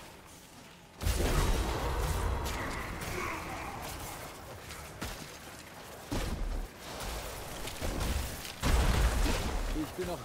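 Game spells crackle and boom with deep thuds.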